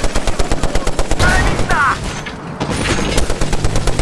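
Explosions boom in quick succession.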